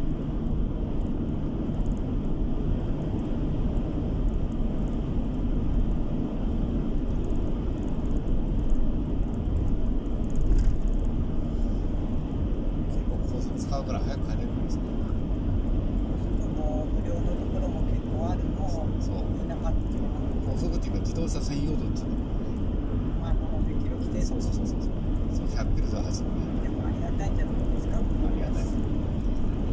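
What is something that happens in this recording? A car engine hums steadily with a low rumble of tyres on the road inside the car.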